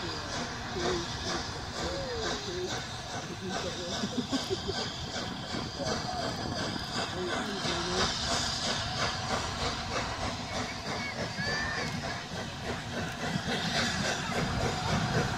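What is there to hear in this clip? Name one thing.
A crowd of people murmurs and talks nearby.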